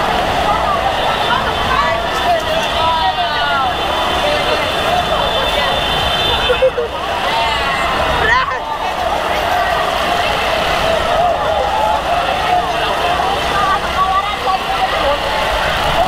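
A large crowd shouts and cheers outdoors.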